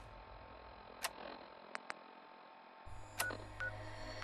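A handheld electronic device clicks sharply.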